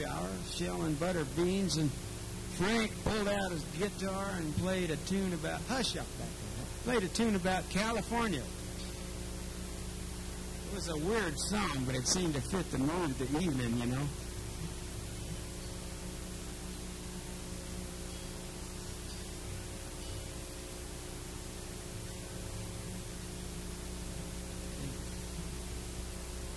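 An acoustic guitar strums steadily.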